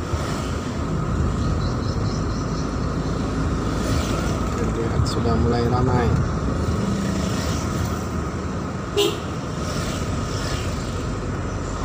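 A car engine hums steadily as the car drives along.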